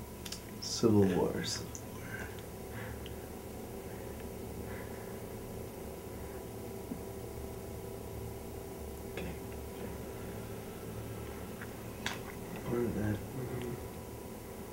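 A young man whispers close by.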